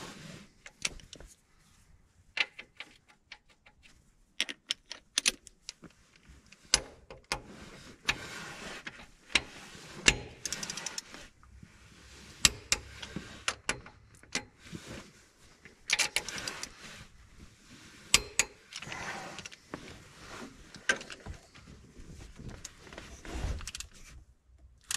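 A ratchet wrench clicks rapidly as bolts are turned.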